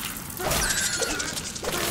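A blade swings and strikes a creature.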